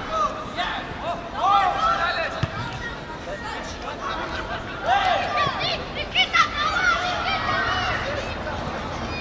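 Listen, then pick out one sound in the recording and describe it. Young men shout loudly to each other across an open pitch.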